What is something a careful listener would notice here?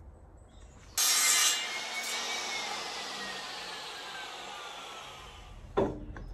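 A power saw whines loudly and winds down.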